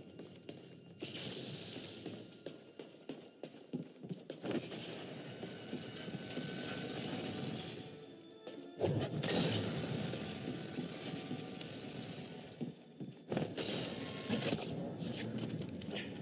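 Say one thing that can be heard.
Footsteps clatter on a metal walkway.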